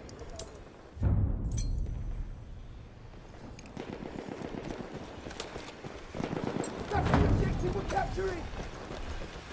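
A heavy explosion booms and rumbles nearby.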